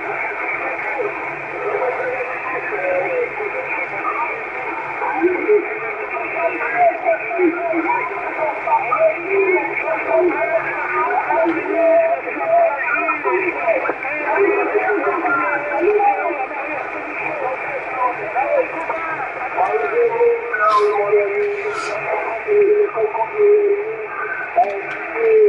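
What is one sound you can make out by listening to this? A radio receiver plays through its small loudspeaker, narrow and crackly.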